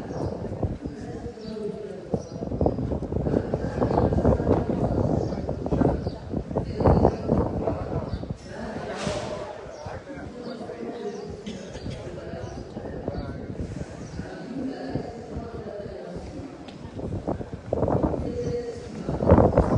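A crowd murmurs and chatters in a large open stadium, heard from a distance.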